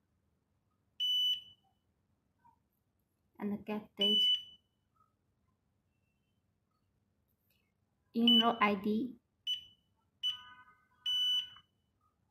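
An electronic device gives short, high beeps.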